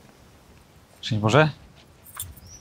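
A young man speaks briefly and calmly nearby.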